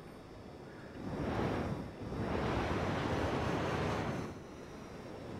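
Thrusters hiss in loud bursts.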